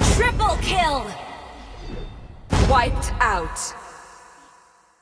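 Game sound effects chime and ring out in quick bursts.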